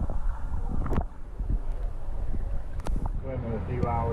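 Water splashes as a swimmer surfaces.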